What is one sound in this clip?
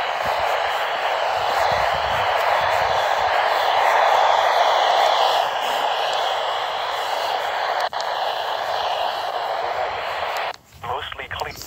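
A handheld radio hisses loudly with static.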